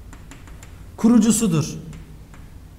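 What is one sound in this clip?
A young man speaks briefly and calmly nearby.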